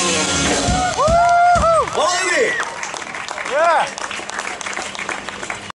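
A rock band plays electric guitars loudly with bending notes.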